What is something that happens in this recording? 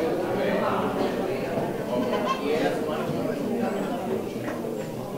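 Children chatter and murmur nearby.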